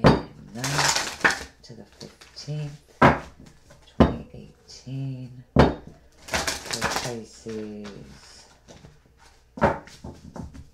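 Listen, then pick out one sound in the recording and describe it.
Playing cards rustle and slap as they are shuffled by hand.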